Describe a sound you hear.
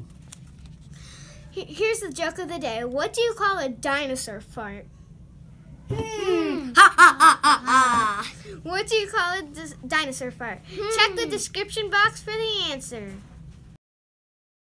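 A young girl speaks with animation into a close microphone.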